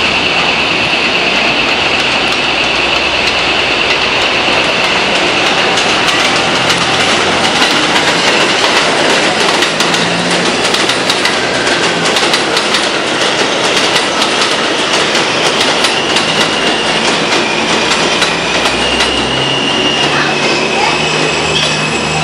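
Steel wheels squeal on the rails of a subway train.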